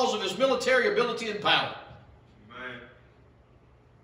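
A man preaches loudly and emphatically into a microphone in an echoing hall.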